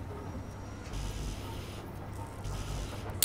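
A welding tool hisses in short bursts.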